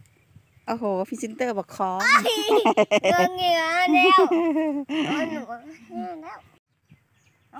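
A young child talks loudly and with animation close by.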